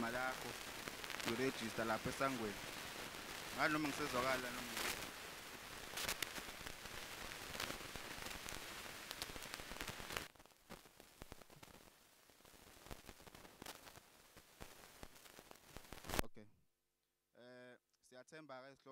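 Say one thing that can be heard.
A man speaks into a microphone over loudspeakers, in short phrases with long pauses.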